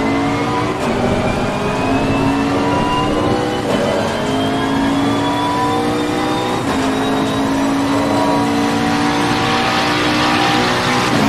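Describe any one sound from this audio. A racing car engine roars loudly, revving up and shifting gears.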